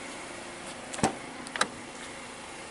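A car door latch clicks as the door opens.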